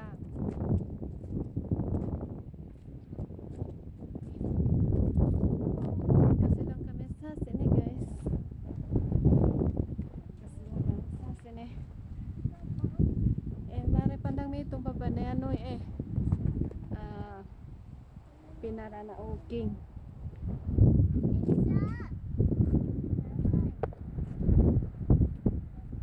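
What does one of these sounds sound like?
Wind gusts and buffets loudly outdoors.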